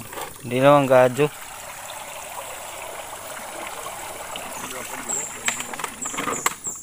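Water splashes in a shallow stream.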